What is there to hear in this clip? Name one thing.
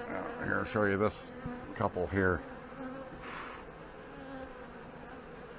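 Bees buzz in a steady hum close by.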